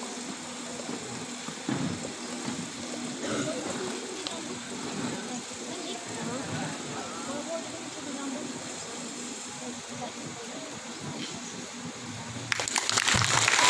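A crowd of young people murmurs and chatters.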